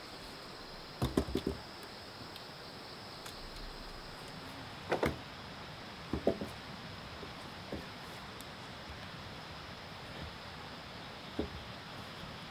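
Wooden poles knock and thud against each other.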